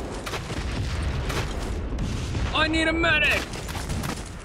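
Rifle shots crack in rapid bursts.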